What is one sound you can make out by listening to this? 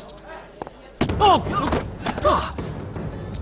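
A man shouts while wrestling on the ground.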